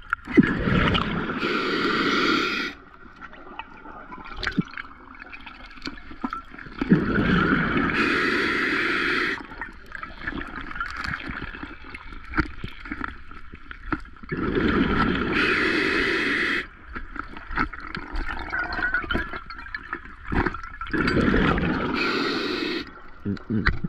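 A diver breathes out through a regulator in loud, bubbling bursts underwater.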